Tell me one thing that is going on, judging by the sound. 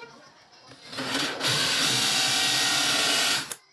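A drill spins a hole saw with a steady whir.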